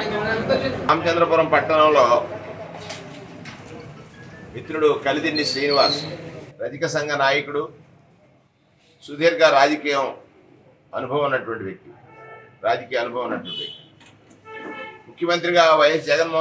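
A middle-aged man speaks firmly and at length, close by.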